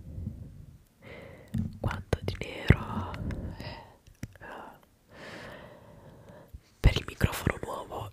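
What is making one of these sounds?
A young woman whispers softly, very close to a microphone.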